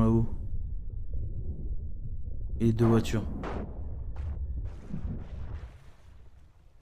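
A low, muffled underwater rumble drones steadily.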